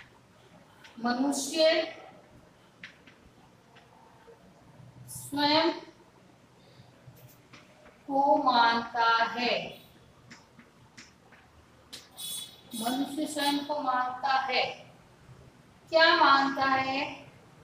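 A woman speaks slowly and clearly nearby, as if reading out.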